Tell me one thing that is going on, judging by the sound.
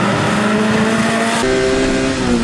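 A rally car engine screams at high revs as the car speeds past.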